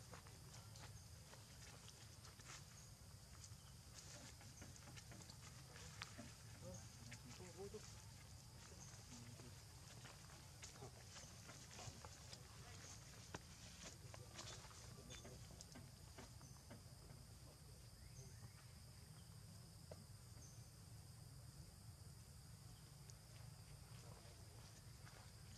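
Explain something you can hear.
Leaves rustle as monkeys move through low plants.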